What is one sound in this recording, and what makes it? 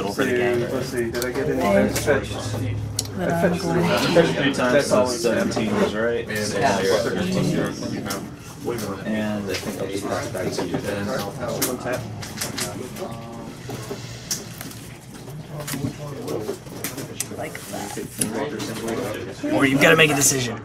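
Playing cards rustle and slap as two players shuffle their decks.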